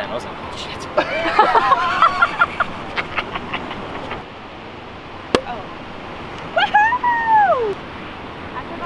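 A young woman shrieks and laughs with excitement.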